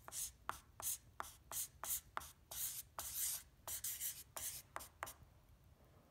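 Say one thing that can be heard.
A felt-tip marker squeaks across paper.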